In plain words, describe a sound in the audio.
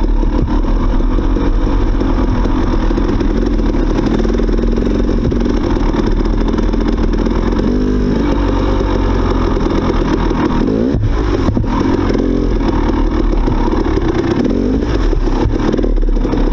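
A motorcycle engine hums steadily close by, revving up now and then.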